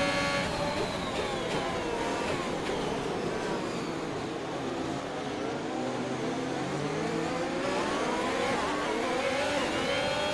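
Engines of other racing cars whine past close by.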